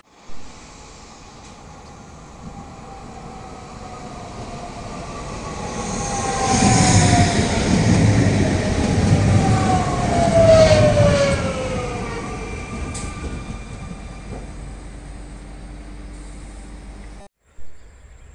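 An electric regional train passes close by, its motor whine falling in pitch.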